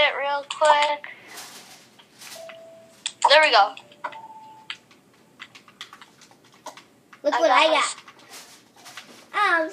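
Soft menu clicks sound from a television speaker.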